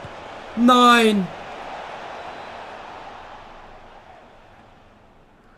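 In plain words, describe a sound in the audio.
A stadium crowd cheers.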